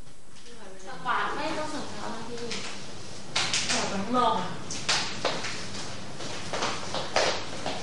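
A young woman calls out loudly.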